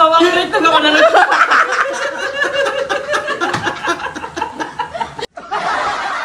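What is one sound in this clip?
Young women laugh loudly and shriek close by.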